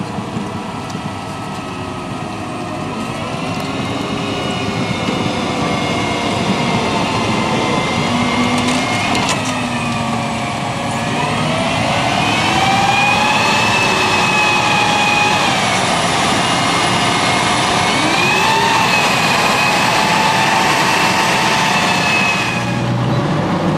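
Tank tracks clank and squeal over muddy ground.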